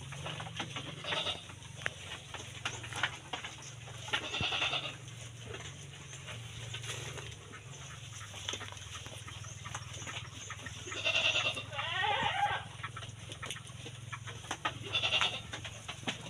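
Sheep and a goat bleat loudly nearby.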